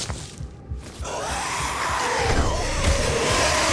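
Flesh tears and squelches wetly during a brutal melee attack.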